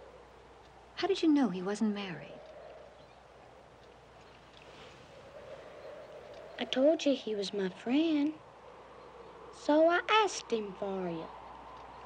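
A woman speaks softly and weakly, close by.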